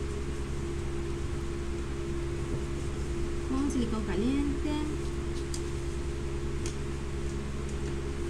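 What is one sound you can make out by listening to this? Hands rub and rustle cloth on a table.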